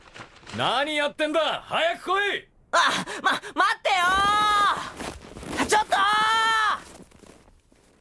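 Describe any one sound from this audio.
A young boy calls out loudly and eagerly.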